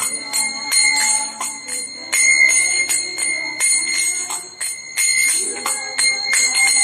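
Small hand cymbals clang in a steady rhythm and ring.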